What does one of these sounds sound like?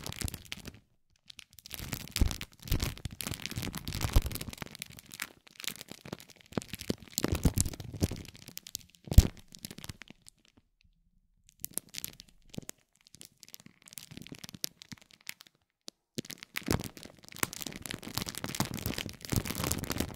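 A spiked metal roller crackles and rustles as it rolls over crinkly plastic film, close up.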